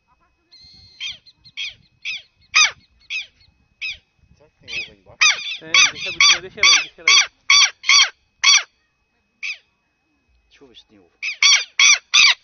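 A small young animal squeaks in short, high, repeated cries.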